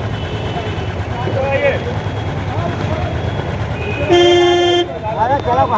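A vehicle engine idles nearby with a steady low rumble.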